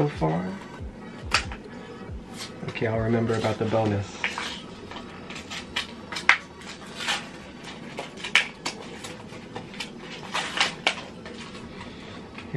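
Plastic packaging crinkles and tears as hands open it.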